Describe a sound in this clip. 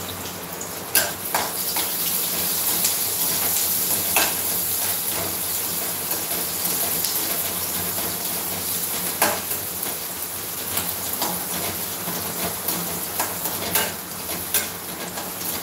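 Metal utensils clink against cookware.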